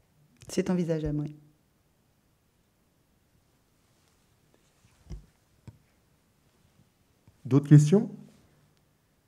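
A middle-aged woman speaks calmly into a microphone in short phrases, with pauses.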